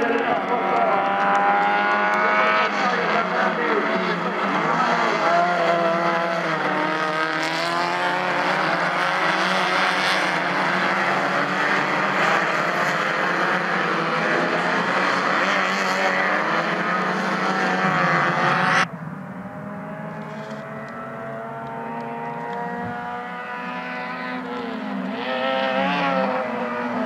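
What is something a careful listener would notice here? Many race car engines roar and rev loudly.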